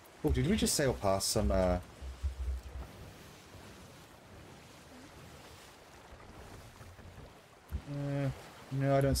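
Stormy sea waves roar and crash.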